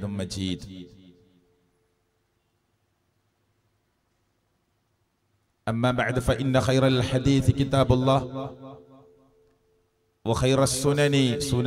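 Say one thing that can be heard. A man speaks with animation through a microphone, with pauses between phrases.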